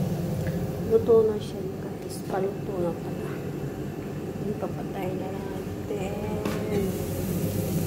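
A young woman speaks quietly close by.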